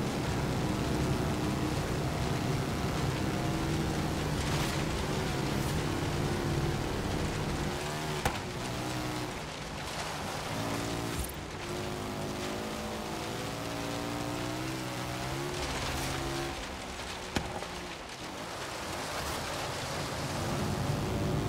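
An off-road buggy engine revs and hums steadily, rising and falling in pitch.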